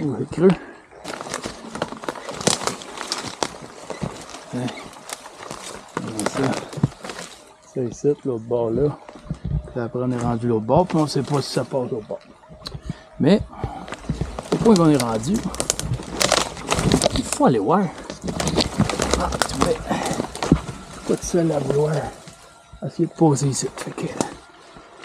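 Twigs and leaves crunch underfoot.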